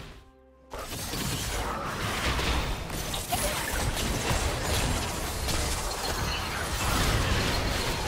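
Magic blasts whoosh and crackle in a busy video game battle.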